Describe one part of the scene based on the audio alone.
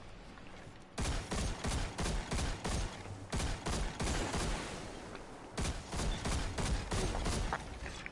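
A rapid-fire weapon shoots in quick bursts of loud blasts.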